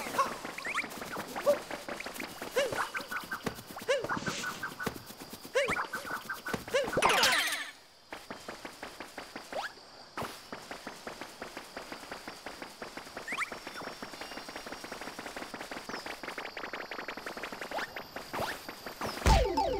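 Cheerful video game music plays.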